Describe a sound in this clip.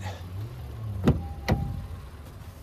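A car door latch clicks open.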